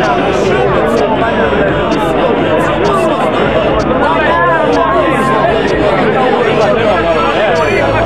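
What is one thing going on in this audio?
A crowd of women chatters close by, many voices overlapping.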